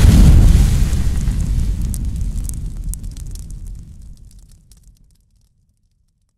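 A loud whoosh of fire roars and slowly fades away.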